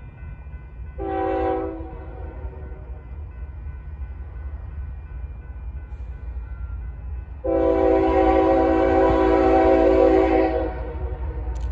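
A diesel freight locomotive sounds its air horn in two blasts.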